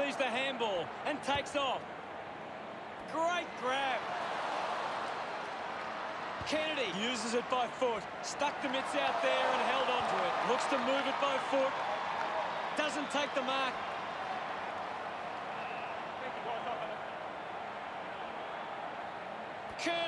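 A large stadium crowd roars.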